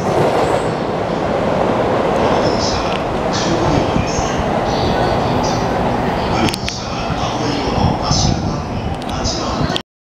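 A train rumbles along the tracks in the distance, slowly coming closer.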